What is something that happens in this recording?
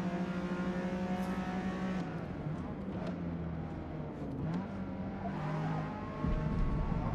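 A racing car engine roars at high revs, then drops in pitch as the car slows.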